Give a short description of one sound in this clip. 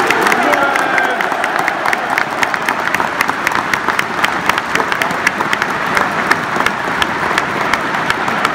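A crowd claps in a fast, steady rhythm.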